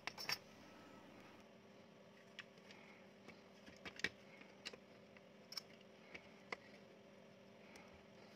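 Circuit boards click and tap softly as hands handle them.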